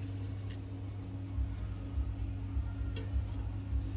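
Hands squish and rustle vegetables in a clay pot.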